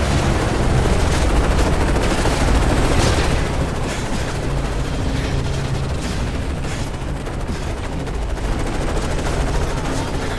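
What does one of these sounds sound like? Gunfire crackles loudly nearby.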